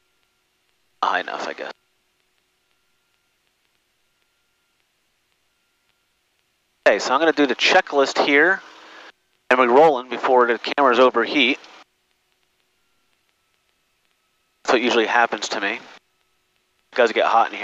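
A young man speaks calmly in short bursts through a headset intercom.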